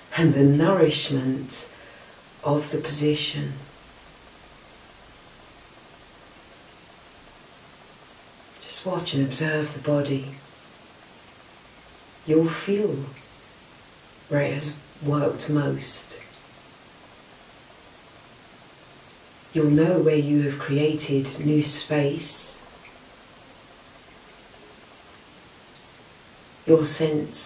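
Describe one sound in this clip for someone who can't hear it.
A woman speaks calmly and softly, close by, with pauses between phrases.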